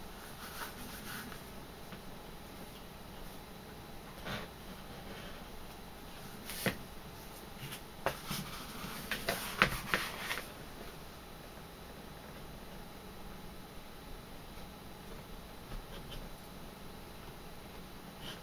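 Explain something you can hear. A small knife cuts through leather.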